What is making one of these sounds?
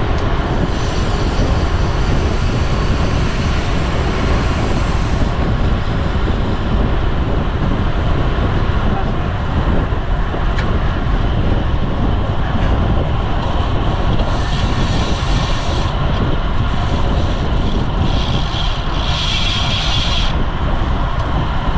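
Strong wind rushes and buffets steadily outdoors.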